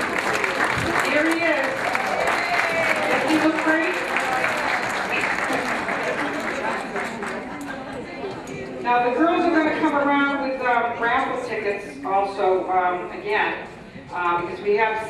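A crowd of elderly people chatters and laughs in a room.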